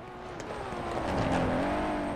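Tyres skid on dirt.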